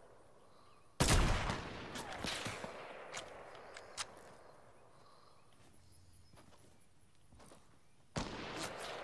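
A sniper rifle fires with a loud crack that echoes away.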